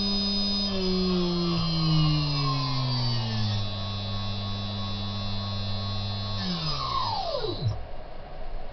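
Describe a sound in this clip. A machine spindle motor whines and slowly winds down to a stop.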